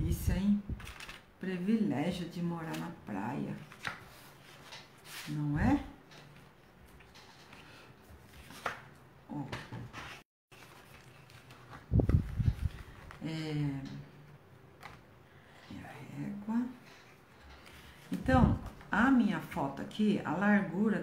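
Paper rustles and slides as sheets are handled.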